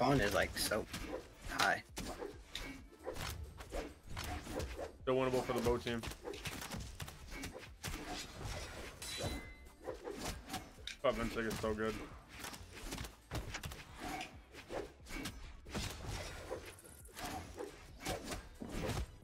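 Game fighters strike each other with rapid hits and whooshes.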